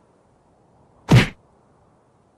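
A rock thuds hard against a head.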